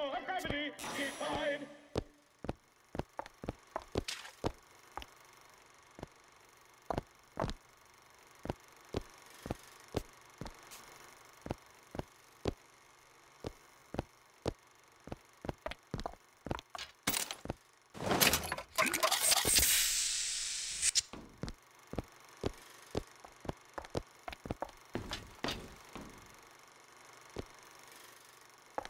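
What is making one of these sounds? Footsteps ring on a hard metal floor at a steady walking pace.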